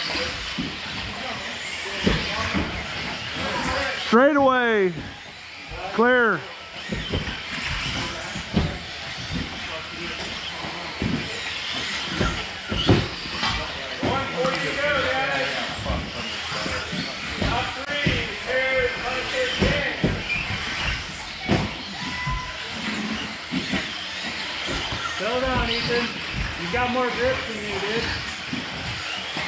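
Model cars knock and clatter as they land.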